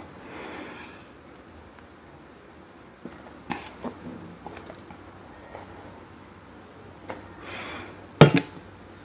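A young woman slurps a drink from a metal bowl close by.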